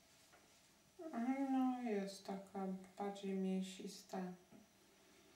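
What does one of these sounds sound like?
A woman speaks softly nearby.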